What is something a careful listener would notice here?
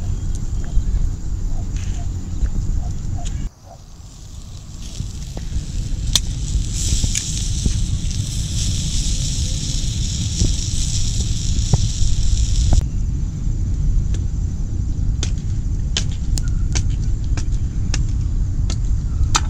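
A charcoal fire crackles and pops.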